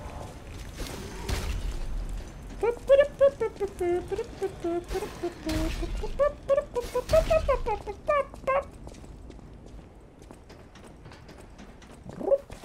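Footsteps thud quickly on hard floors.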